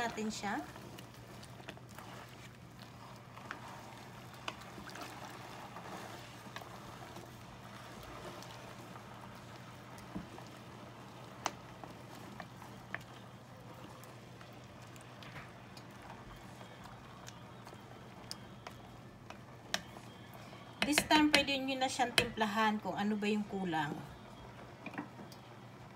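A pot of stew simmers with a soft bubbling.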